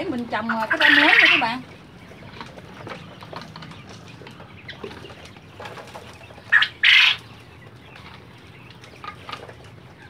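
Loose soil pours out of a plastic pail onto a heap.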